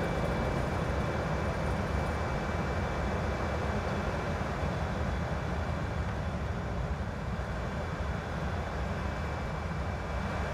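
Jet engines roar steadily from inside a cockpit.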